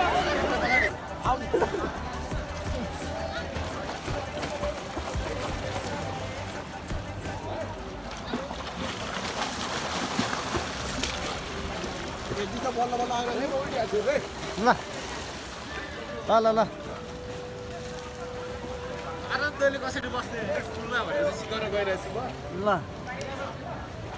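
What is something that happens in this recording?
Water splashes and laps close by.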